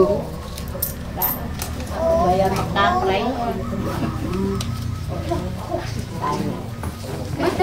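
Several women talk and chat among themselves nearby.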